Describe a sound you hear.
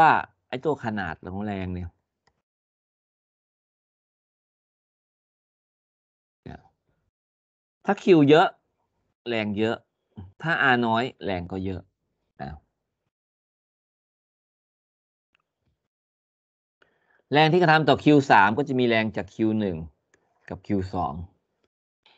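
A man speaks calmly through a microphone, with long pauses.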